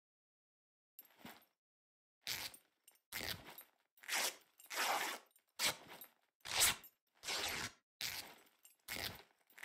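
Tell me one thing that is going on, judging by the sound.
Cloth rustles repeatedly as a bag is searched.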